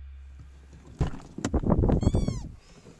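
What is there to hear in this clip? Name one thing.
A car door clicks open.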